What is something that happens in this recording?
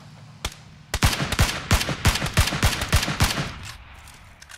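A game rifle fires a series of single shots.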